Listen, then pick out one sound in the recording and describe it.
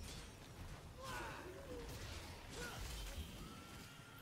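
A magic blast crackles and bursts.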